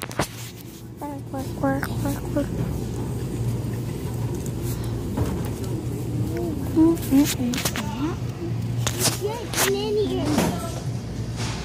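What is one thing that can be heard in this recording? A young boy talks with animation close to a phone microphone.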